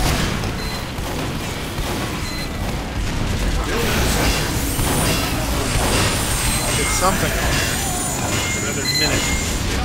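A machine whirs and clanks as it is built.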